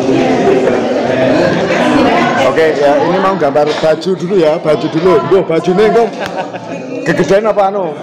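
A middle-aged man laughs and talks with animation close by.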